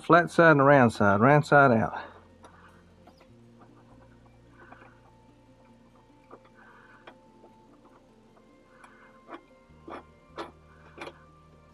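Small metal parts click and scrape as a nut is turned by hand.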